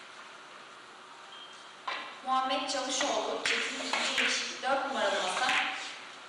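Billiard balls click sharply against each other and the cushions.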